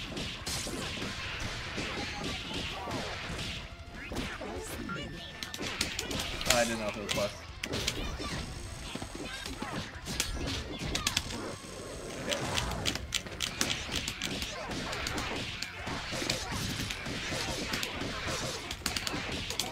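Fighting game hits and punches crack rapidly, over and over.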